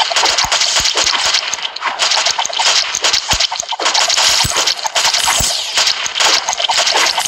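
Rapid game gunfire and explosions crackle without pause.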